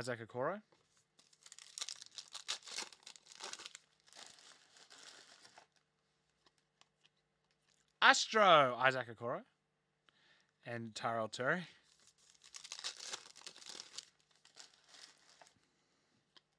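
A foil card pack crinkles as hands tear it open.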